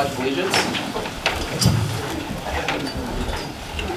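Chairs scrape and shuffle as people stand up.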